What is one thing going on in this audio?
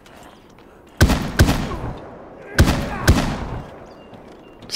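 Rifle shots crack loudly, with a ringing echo.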